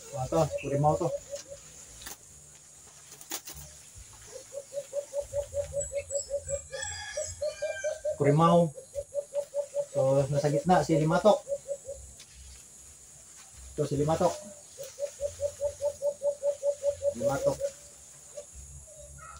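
A cloth cover rustles against a bird cage.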